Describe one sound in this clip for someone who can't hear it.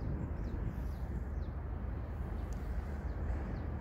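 Fingers pick up a small die from a soft cloth with a faint tap.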